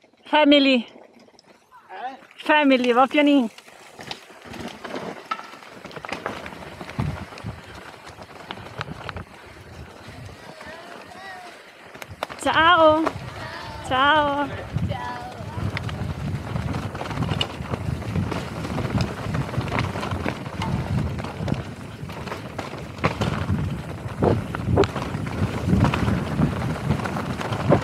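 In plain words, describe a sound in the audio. Bike tyres roll and crunch over a rocky dirt trail.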